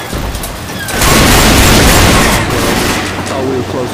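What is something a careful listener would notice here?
A shotgun fires loudly in quick blasts.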